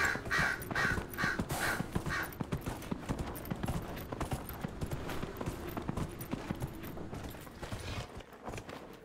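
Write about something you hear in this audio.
A horse's hooves thud quickly along a dirt path.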